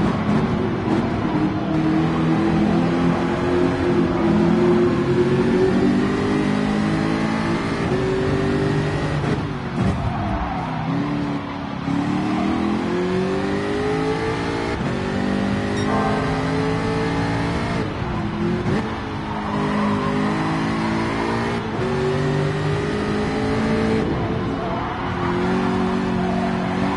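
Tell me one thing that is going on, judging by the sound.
A racing car engine roars loudly, rising and falling in pitch as the gears shift.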